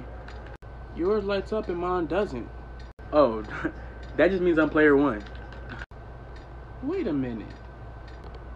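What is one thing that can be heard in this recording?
A young man talks and laughs close by with animation.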